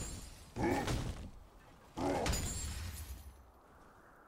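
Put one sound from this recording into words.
Magic spell blasts burst loudly, twice in quick succession.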